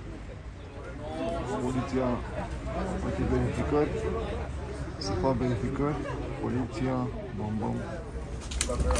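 Several men and women talk among themselves nearby, outdoors.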